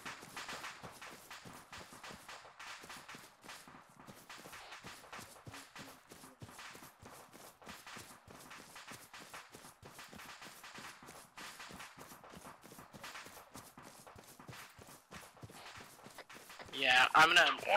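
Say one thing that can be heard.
Footsteps swish through tall grass at a steady pace.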